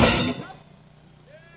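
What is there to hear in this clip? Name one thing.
A cymbal crashes and rings out briefly.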